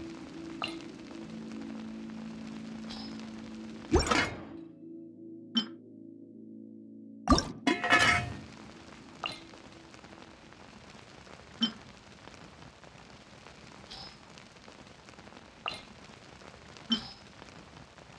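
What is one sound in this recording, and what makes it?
Soft game menu clicks and chimes sound as options are selected.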